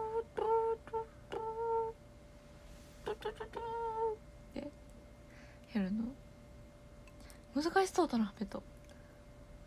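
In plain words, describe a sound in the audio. A young woman speaks playfully close to the microphone.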